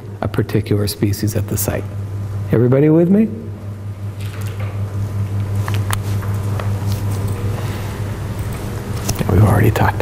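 A middle-aged man lectures calmly through a microphone.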